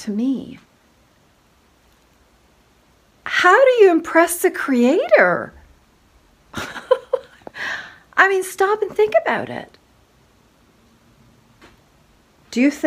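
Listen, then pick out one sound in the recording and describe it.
A middle-aged woman speaks close up with animation, exclaiming loudly at times.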